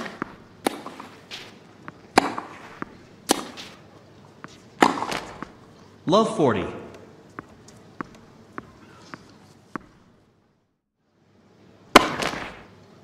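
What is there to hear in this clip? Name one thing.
Tennis balls are struck with rackets in sharp pops.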